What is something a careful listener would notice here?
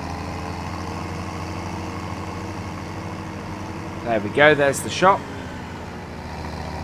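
A tractor engine hums steadily at low speed.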